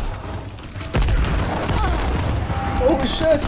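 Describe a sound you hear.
A fiery explosion roars.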